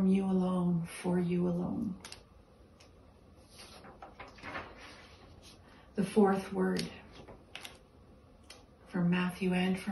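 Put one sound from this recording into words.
An elderly woman sings sustained notes close by, pausing between phrases.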